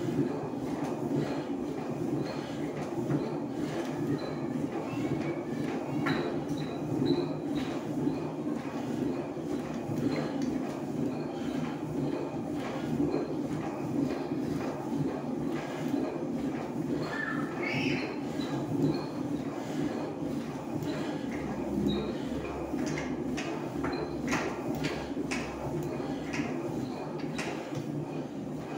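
Metal parts of an exercise machine squeak and click in rhythm.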